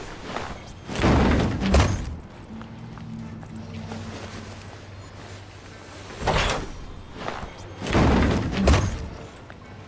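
A body thuds heavily onto hard ground.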